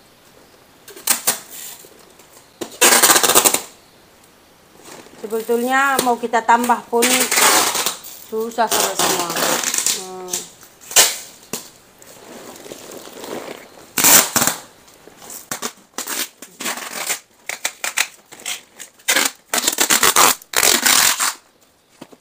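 Plastic wrapping rustles and crinkles loudly as a bundle is wrapped.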